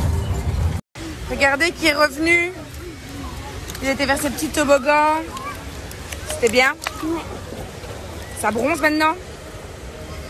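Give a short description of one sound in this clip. A young boy talks and laughs in a pool.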